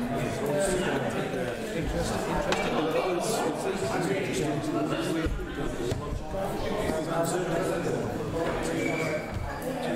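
Several men and women chatter at once nearby, in a room that echoes slightly.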